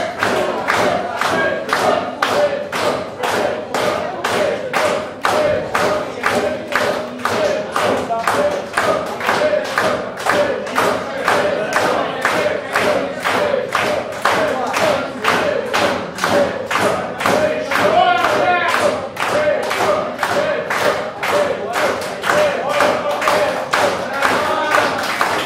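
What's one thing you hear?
A band plays lively music with a fast, steady beat.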